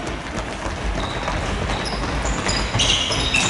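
Sneakers squeak sharply on a hall floor.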